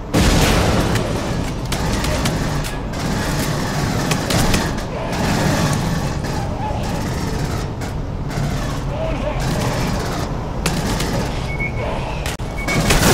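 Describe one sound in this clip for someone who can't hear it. A low mechanical rumble drones steadily.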